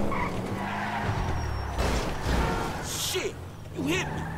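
Tyres screech as a car drifts around a corner.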